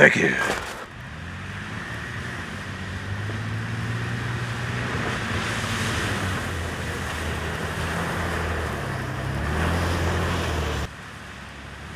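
Tyres crunch on snow as a vehicle drives past.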